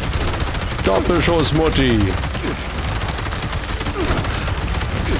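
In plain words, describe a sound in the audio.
A heavy gun fires in a rapid, continuous burst.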